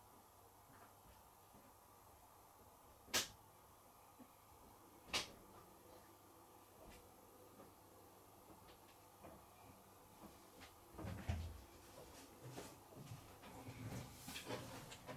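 Washing machines churn steadily, with laundry thumping softly inside the drums.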